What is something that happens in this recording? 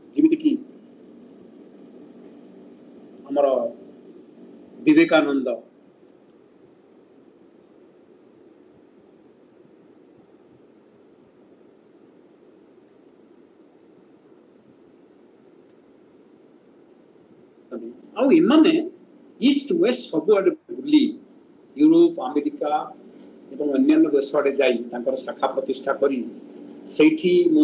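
An elderly man speaks calmly through an online call, pausing at length between phrases.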